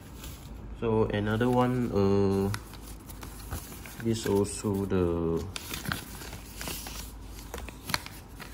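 Paper rustles and crinkles as it is unfolded and handled.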